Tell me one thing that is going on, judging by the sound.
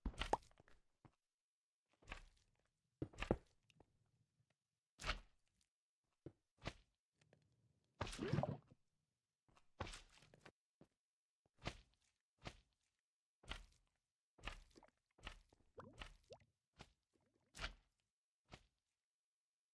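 Stone blocks thud and crunch as they are placed and broken, in short separate bursts.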